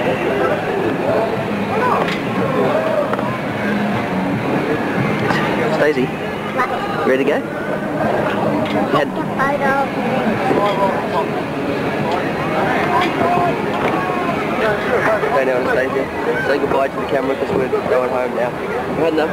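A crowd chatters outdoors all around.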